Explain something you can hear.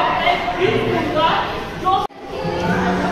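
A crowd of children chatter and talk at once.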